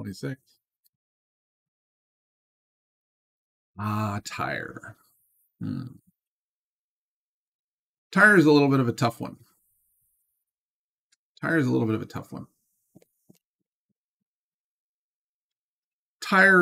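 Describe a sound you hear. A middle-aged man speaks calmly into a close microphone, with long pauses between phrases.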